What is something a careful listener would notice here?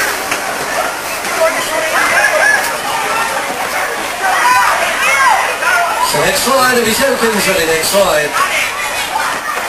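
Children shout and chatter excitedly nearby.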